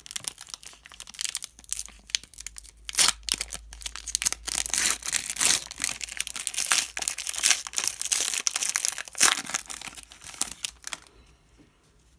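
A foil wrapper crinkles and tears loudly close by.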